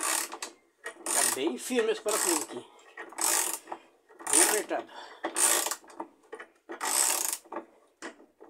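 A ratchet wrench clicks in quick bursts.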